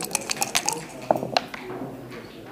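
Dice clatter onto a wooden board.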